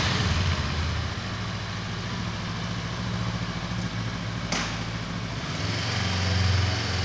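A motorcycle engine idles with a low, throbbing rumble and revs up toward the end, echoing in a tunnel.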